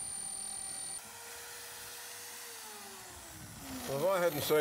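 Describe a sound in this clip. A drill press motor winds down to a stop.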